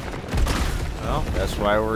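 A monster roars and screeches.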